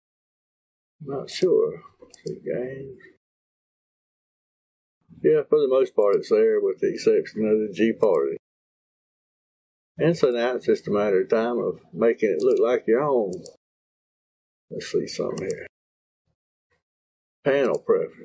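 A man speaks calmly into a microphone, close by, in short bursts with pauses.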